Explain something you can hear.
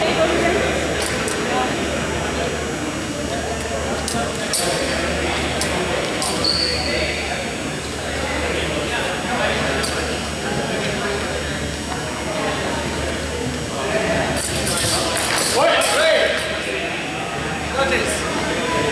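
Wooden weapons clack sharply as two fencers spar.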